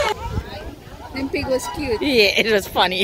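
Young children chatter and call out excitedly close by.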